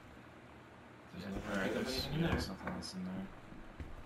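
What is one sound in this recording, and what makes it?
A wooden drawer slides shut with a soft thud.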